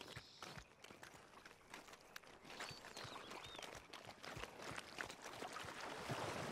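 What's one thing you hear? Footsteps crunch on soft ground.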